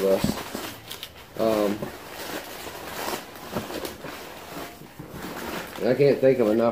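Cardboard and paper rustle as a package is unpacked.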